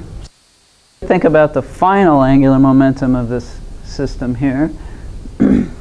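An older woman speaks clearly to a room, heard through a microphone.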